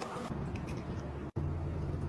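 Milk pours into a glass cup.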